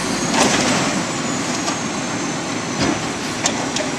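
A hydraulic arm whines as it lifts a bin.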